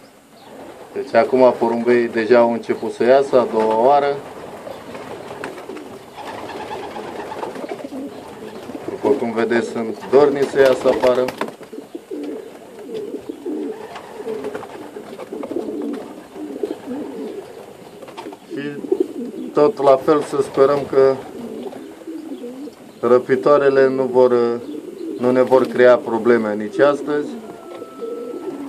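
Pigeons coo loudly close by, in repeated throaty bursts.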